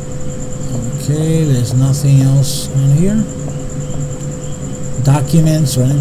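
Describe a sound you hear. A young man talks briefly into a close microphone.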